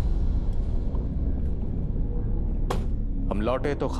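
A car door thumps shut.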